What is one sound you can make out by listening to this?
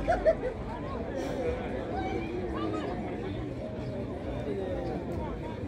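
A large outdoor crowd of men and women talks in a dense, overlapping murmur.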